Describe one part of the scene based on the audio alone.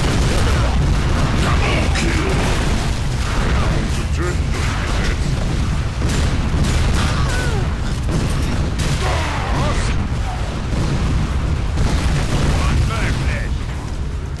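Rockets explode with heavy booms.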